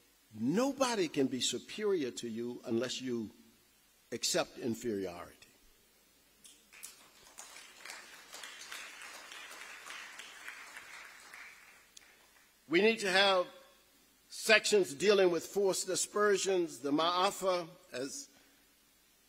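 A man speaks calmly into a microphone through loudspeakers in a large echoing hall.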